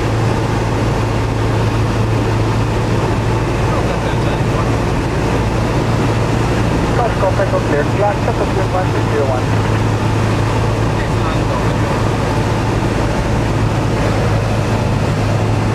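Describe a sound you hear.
Wind rushes past the cabin.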